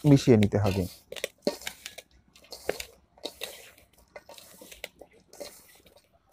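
Hands rustle and knead soil in a bowl.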